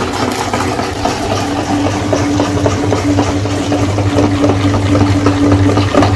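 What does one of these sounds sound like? An electric meat grinder hums and whirs steadily.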